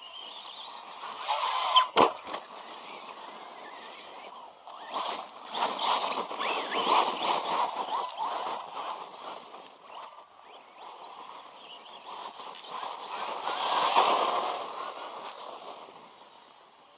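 A remote-control car's electric motor whines as it races nearby.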